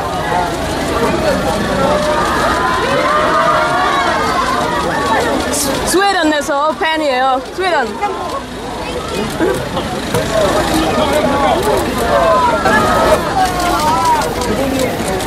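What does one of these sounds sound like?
A crowd of young women and men chatter and call out excitedly close by, outdoors.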